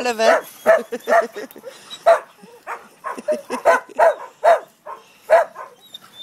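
Dogs snarl and yelp as they play-fight.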